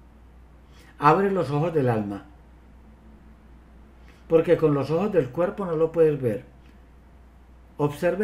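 An older man speaks with animation through an online call.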